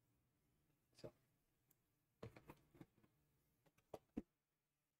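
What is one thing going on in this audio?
A small cardboard box is picked up and knocks softly against a hard surface.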